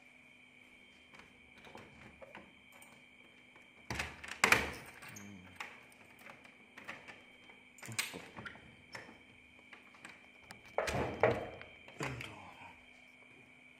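A metal door handle rattles and clicks.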